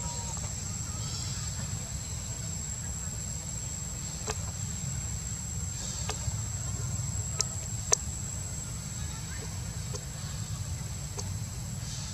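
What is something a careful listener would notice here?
Branches creak and leaves rustle as monkeys climb through a tree.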